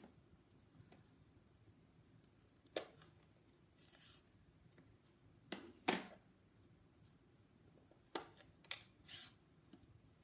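A small plastic case clicks open and snaps shut.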